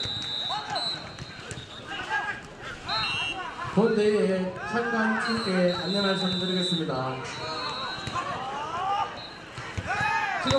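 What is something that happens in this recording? Young women shout calls to each other across an open outdoor field.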